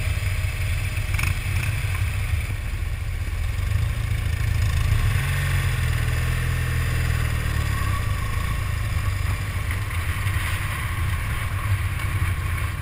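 A motorcycle engine rumbles steadily up close as it rides over grass.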